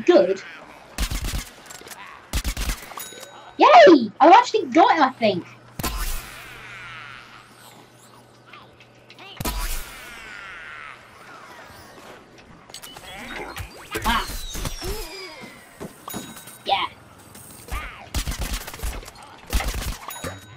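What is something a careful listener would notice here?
A weapon fires in sharp, quick bursts.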